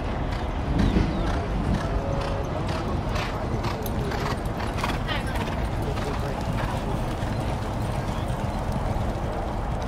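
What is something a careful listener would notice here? Horses' hooves thud on soft dirt as they gallop past.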